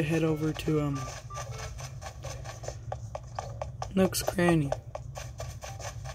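Light footsteps patter quickly on grass.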